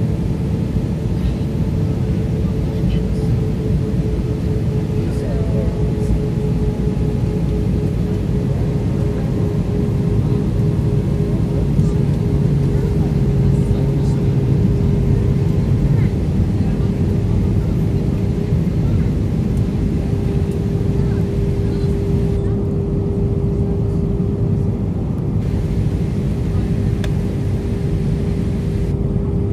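Jet engines roar steadily with a low, even hum inside an airliner cabin.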